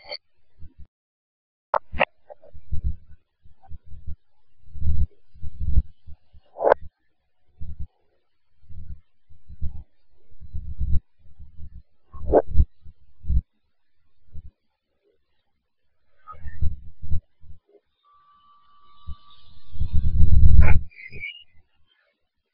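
A girl talks quietly and close to a microphone.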